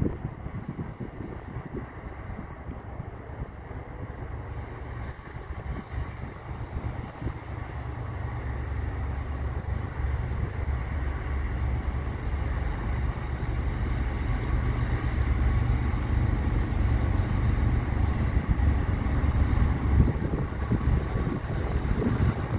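A distant train rumbles, growing louder as it slowly approaches.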